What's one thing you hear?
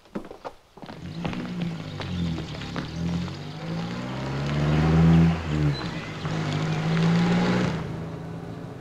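A car engine hums and rises in pitch as it drives off.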